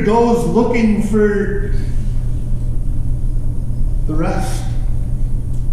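A man speaks calmly in a large echoing room.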